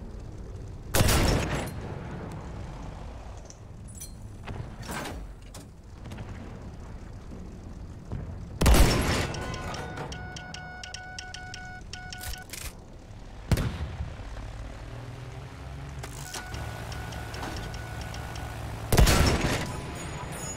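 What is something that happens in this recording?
Loud explosions boom several times.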